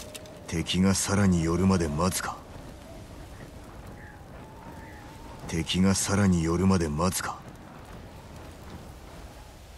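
A flaming arrow tip crackles.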